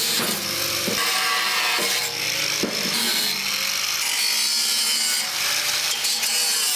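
An angle grinder whines loudly, grinding against metal with a harsh hiss.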